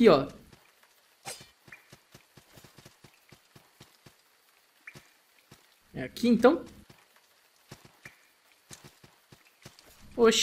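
Footsteps patter lightly on stone.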